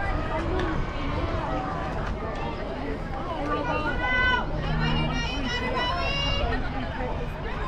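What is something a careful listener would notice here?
Men and women call out and chatter across an open field outdoors.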